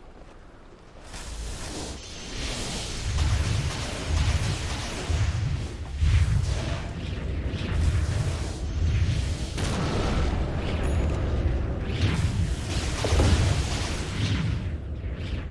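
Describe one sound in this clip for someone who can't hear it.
Magic spells crackle and blast during a video game battle.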